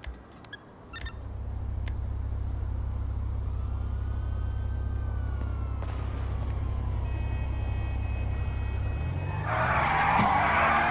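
A car engine runs with a low, steady rumble.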